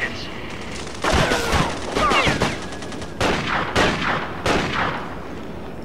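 Rifles fire several sharp shots.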